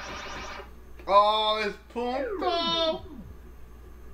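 A falling electronic whine plays as a video game character is caught.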